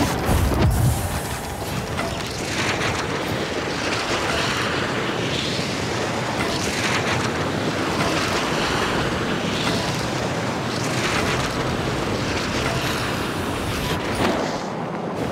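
A small drone whirs and buzzes as it flies fast.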